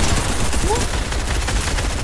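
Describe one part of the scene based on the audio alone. A gun fires several shots.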